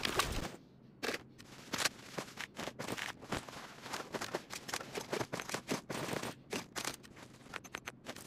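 Short game menu clicks and ticks sound in quick succession.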